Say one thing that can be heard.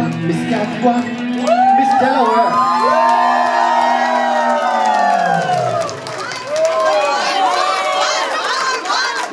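A crowd cheers and screams with excitement.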